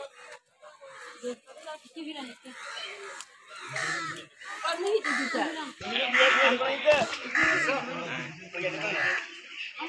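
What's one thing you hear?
Several women talk and call out nearby, outdoors.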